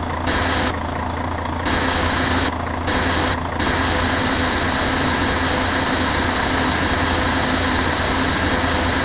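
A small digger engine hums steadily.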